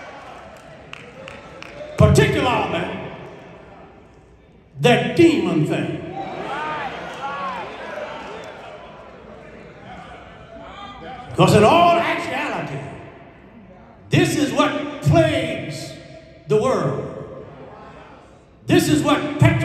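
A man preaches forcefully through a microphone and loudspeakers in a large echoing hall.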